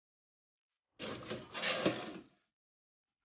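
A metal baking tray scrapes as it slides into an oven.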